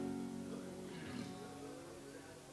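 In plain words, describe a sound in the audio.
An acoustic guitar strums softly.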